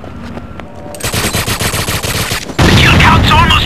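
An automatic rifle fires in a rapid burst.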